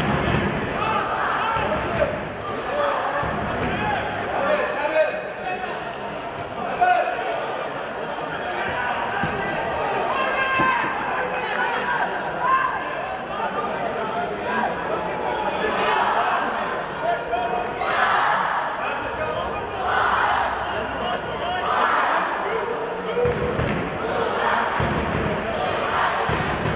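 Nearby spectators chatter and call out in an open stadium.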